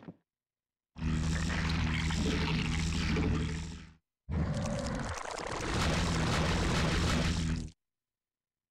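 A strategy game's building upgrade effect hums with a low, steady drone.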